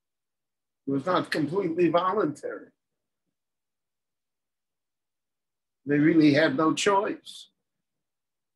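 An elderly man speaks calmly close to a microphone, in two short bursts with a pause between.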